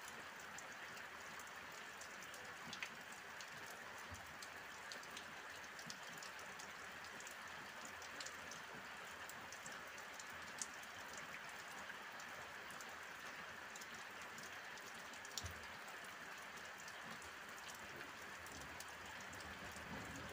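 Steady rain falls and patters on roofs outdoors.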